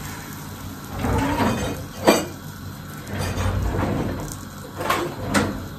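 A drawer slides open and dishes rattle inside it.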